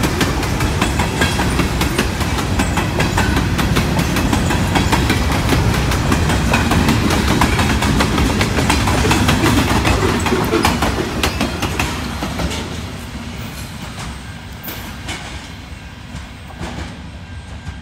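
Steel wheels click over rail joints.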